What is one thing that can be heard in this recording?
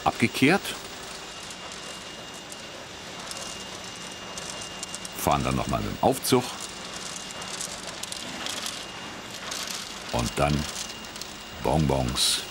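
A conveyor machine hums and rattles steadily.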